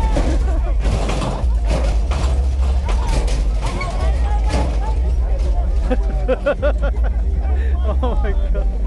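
A crowd of men and women talks and chatters nearby outdoors.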